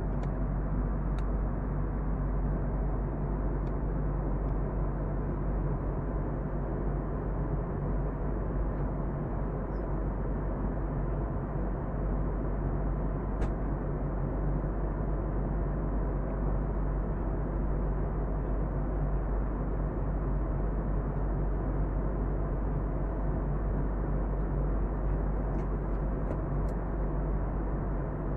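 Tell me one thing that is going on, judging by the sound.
A jet engine roars steadily in flight, heard from inside the cabin.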